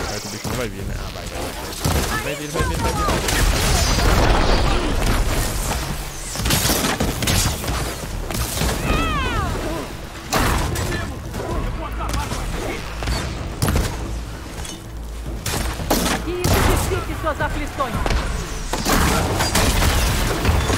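Blasts and crackling energy bursts go off.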